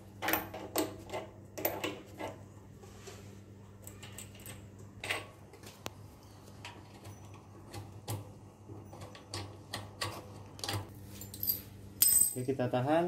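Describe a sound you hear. Metal parts click and tap as a motor is handled.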